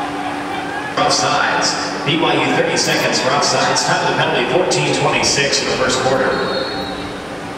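Spectators on the sideline clap.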